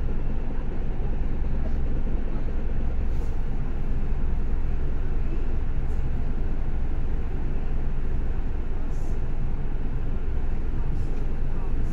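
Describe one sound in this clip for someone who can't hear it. A bus engine rumbles steadily from inside the vehicle.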